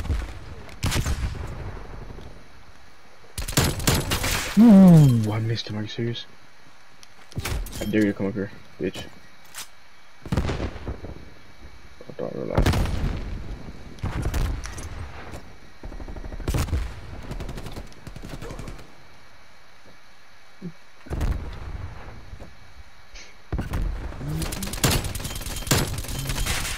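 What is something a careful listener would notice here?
A gun fires loud bursts of shots.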